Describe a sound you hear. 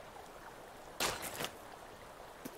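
A bag of gear is opened with a short rustle.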